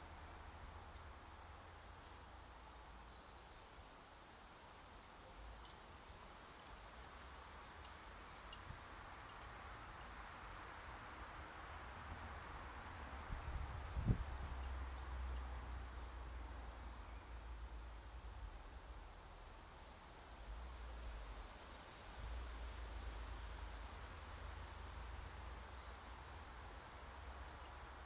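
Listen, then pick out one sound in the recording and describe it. Rain patters steadily on water outdoors.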